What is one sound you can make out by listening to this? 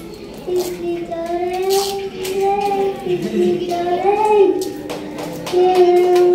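A young girl sings into a microphone, heard through a loudspeaker.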